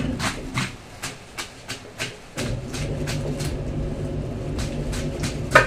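A knife scrapes scales off a large fish in quick strokes.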